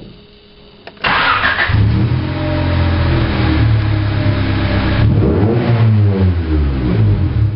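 A car engine starts and rumbles, revving up and down.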